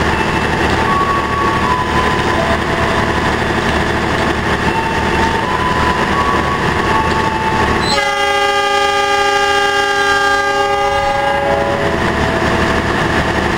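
A diesel locomotive rumbles close by.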